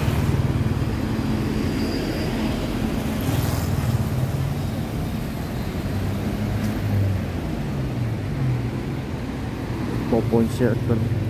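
A motorbike engine idles nearby with a low rumble.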